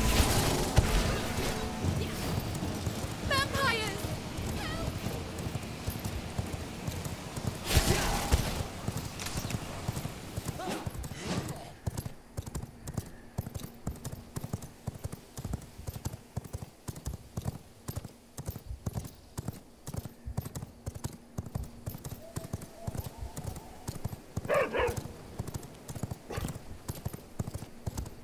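Footsteps patter quickly and steadily on the ground.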